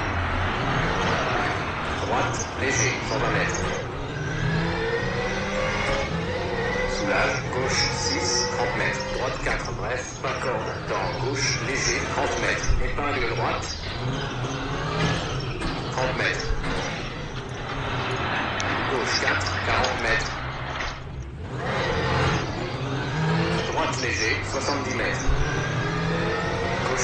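A rally car engine revs hard, rising and falling as gears change.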